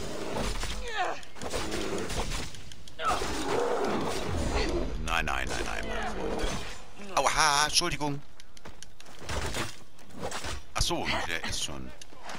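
Blows and weapon clashes ring out in a fight.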